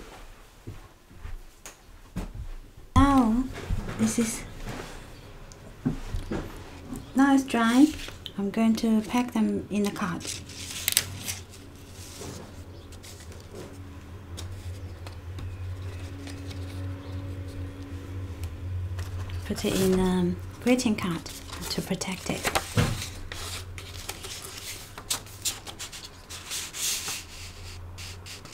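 Paper and card sheets rustle as they are handled.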